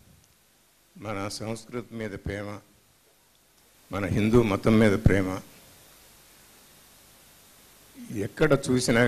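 An elderly man speaks with emotion into a microphone, heard through loudspeakers in a large hall.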